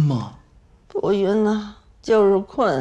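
An elderly woman answers wearily, close by.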